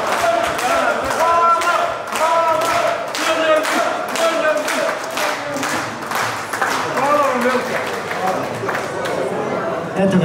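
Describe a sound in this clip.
Lively music with a steady beat plays through loudspeakers in a large room.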